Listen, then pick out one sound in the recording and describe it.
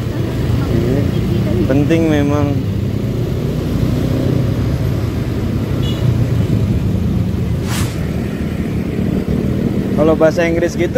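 A young woman speaks casually close by.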